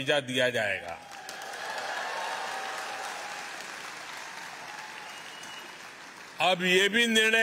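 A large audience applauds and cheers.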